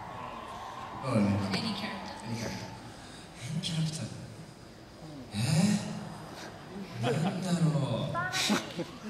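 A young woman speaks into a microphone, heard through loudspeakers in a large hall.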